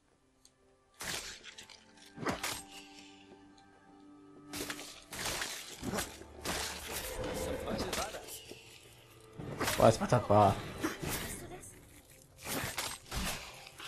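A heavy blade chops and squelches into small creatures.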